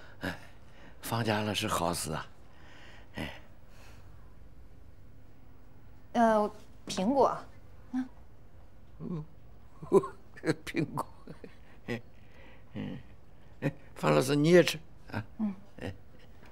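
An elderly man speaks hoarsely and with feeling, close by.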